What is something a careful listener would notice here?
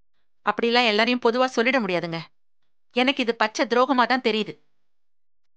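A middle-aged woman speaks with concern nearby.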